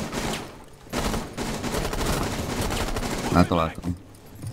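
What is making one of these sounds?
Glass shatters and debris scatters as a window is broken through.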